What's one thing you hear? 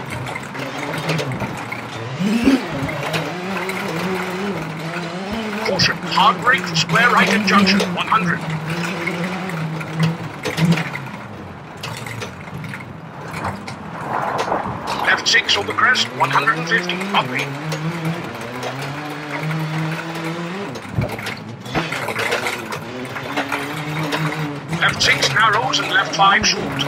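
Tyres crunch and rattle over gravel.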